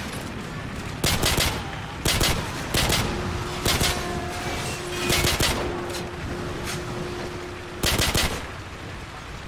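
Pistol shots crack in bursts.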